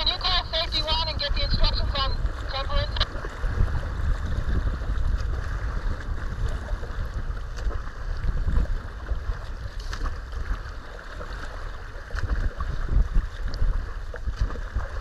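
Choppy water slaps against the hull of a kayak.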